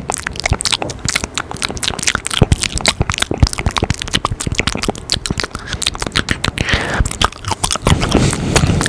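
Soft mouth clicks and taps crackle close to a microphone.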